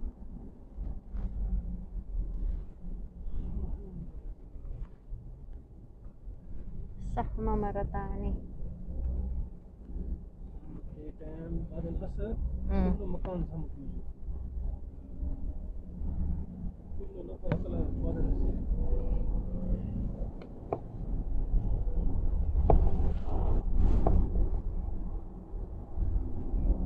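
A car's engine and tyres rumble steadily from inside the moving car.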